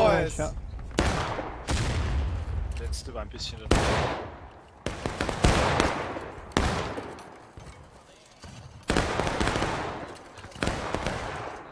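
Rifle shots crack and boom across open ground, echoing afterwards.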